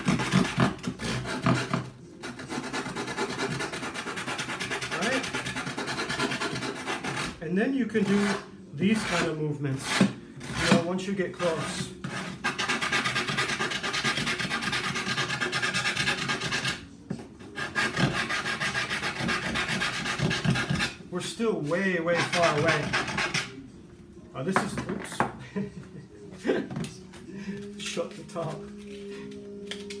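Sandpaper rubs back and forth on wood in quick, steady strokes.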